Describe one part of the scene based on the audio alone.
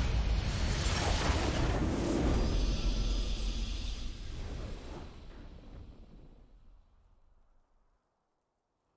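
A triumphant fanfare swells and then fades away.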